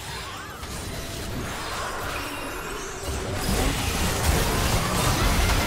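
Game spell effects burst and crackle during a fight.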